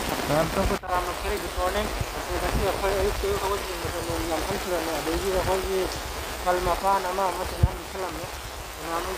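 A man speaks calmly and close by, slightly muffled.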